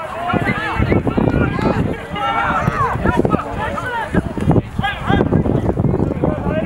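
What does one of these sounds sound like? Men and women nearby shout and cheer loudly outdoors.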